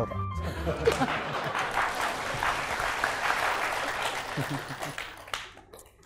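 A woman laughs softly.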